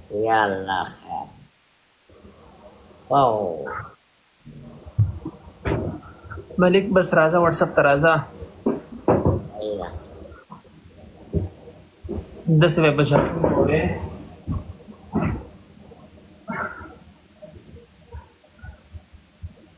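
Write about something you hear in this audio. An older man talks over an online call.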